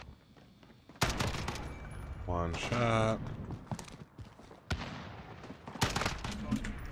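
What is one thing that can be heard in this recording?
Gunshots crack sharply in a video game.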